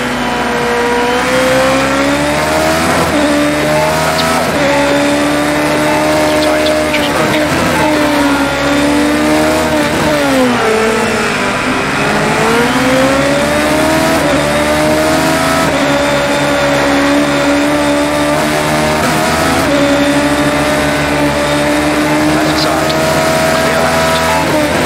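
A racing car engine screams at high revs, rising with each gear and dropping as it slows for a corner.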